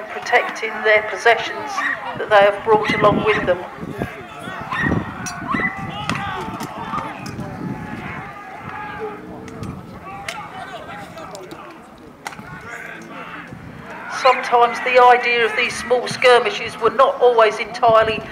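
A crowd of men shouts loudly nearby, outdoors.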